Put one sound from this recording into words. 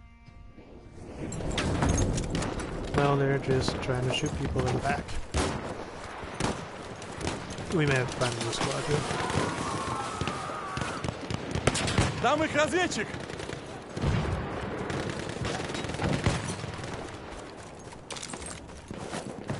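Rifle shots crack repeatedly.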